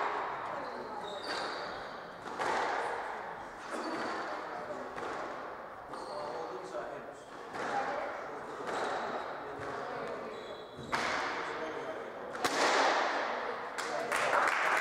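A squash ball smacks sharply against the walls in a quick rally.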